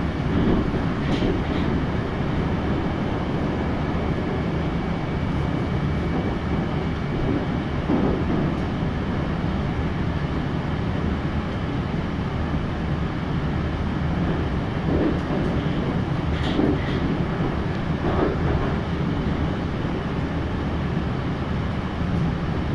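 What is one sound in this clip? A metro train rumbles steadily along the tracks.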